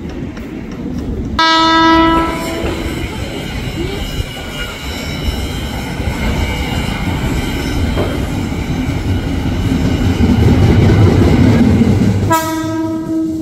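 A train rumbles closer along the tracks.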